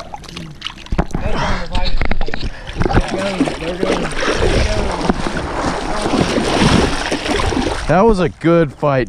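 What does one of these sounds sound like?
A fish splashes and thrashes in shallow water.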